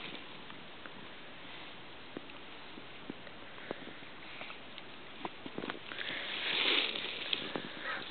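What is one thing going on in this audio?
A horse's nose rustles through dry straw.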